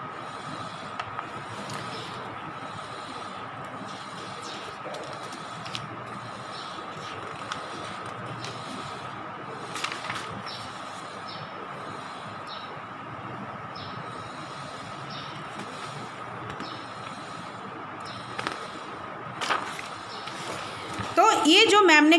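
Paper pages rustle as they are turned.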